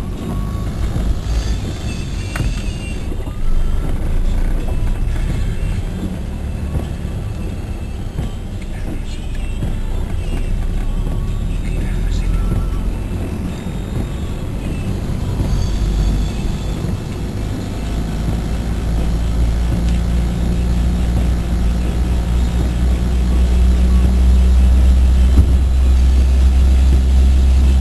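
Tyres hiss on a wet road.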